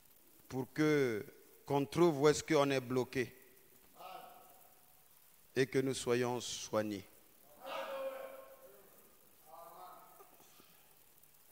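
A man preaches into a microphone with animation, in short bursts with pauses.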